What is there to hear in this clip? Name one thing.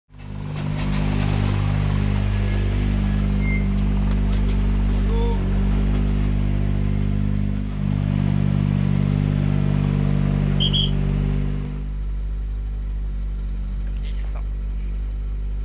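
A rally car engine idles with a steady low rumble.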